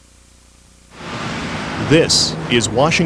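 City street traffic hums outdoors.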